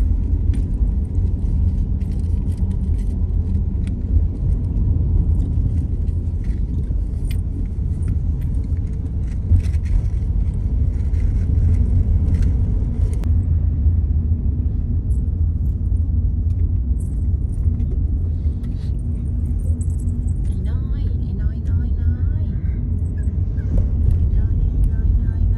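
Motorbike engines hum nearby in traffic.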